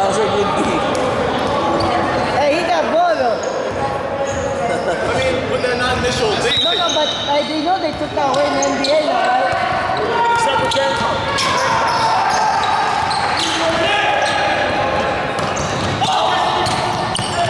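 Sneakers squeak sharply on a hardwood floor.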